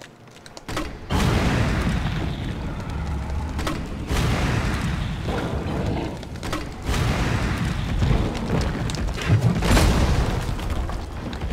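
An explosion bursts into roaring flames.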